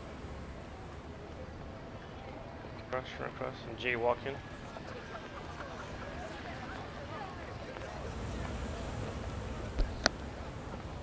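City traffic hums steadily in the background.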